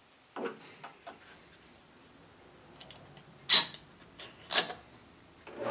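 Metal clamps click and scrape as they are tightened onto wood.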